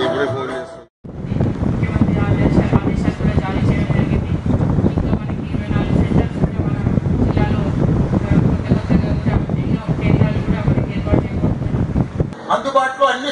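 A woman speaks steadily into a microphone over a loudspeaker.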